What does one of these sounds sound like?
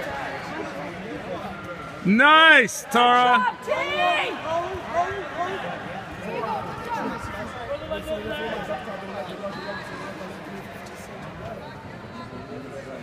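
Two grapplers scuffle and thump on a padded mat.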